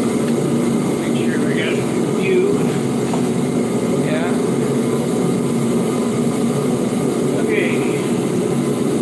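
An older man talks nearby.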